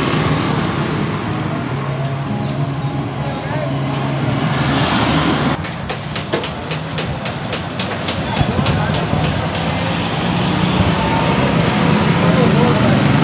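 Motorcycle engines hum and pass by along a street.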